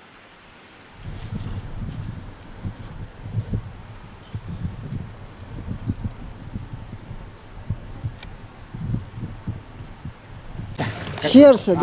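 A stream of water trickles over stones.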